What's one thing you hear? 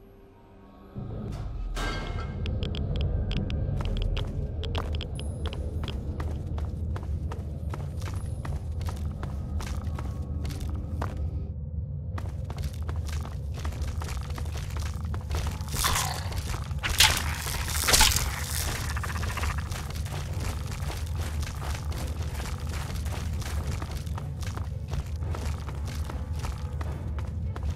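Footsteps crunch on rocky ground in an echoing cave.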